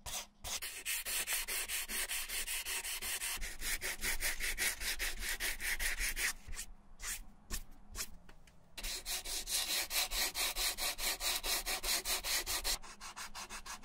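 Sandpaper rasps back and forth in quick, even strokes.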